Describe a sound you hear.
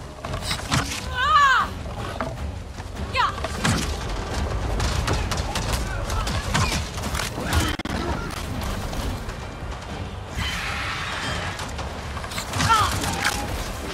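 A large flying creature screeches with shrill, gliding cries.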